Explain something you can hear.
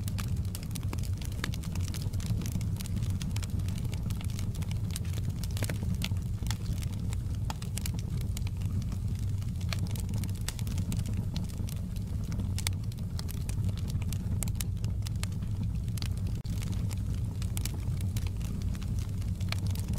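Burning logs crackle and pop.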